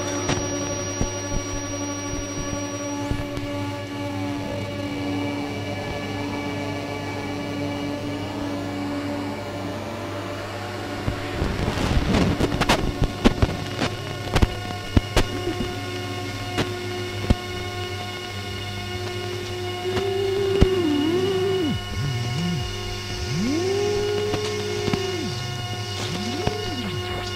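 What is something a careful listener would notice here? Electronic tones drone and warble steadily.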